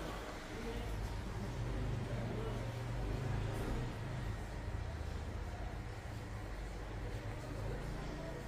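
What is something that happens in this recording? A towel rubs against hair and ears.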